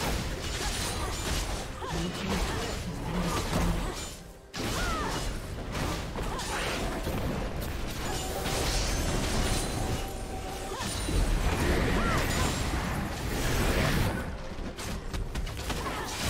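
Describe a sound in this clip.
Game spells and attacks whoosh, zap and crackle in a busy battle.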